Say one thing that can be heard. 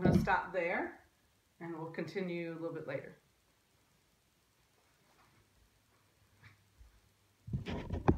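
A woman speaks calmly and clearly close by, pausing between phrases.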